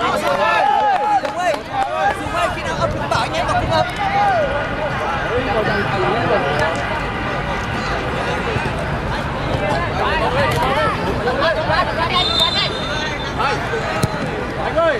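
A crowd of young men shouts and cheers outdoors close by.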